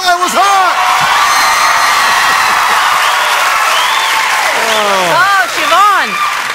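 A large audience cheers and applauds loudly in a big hall.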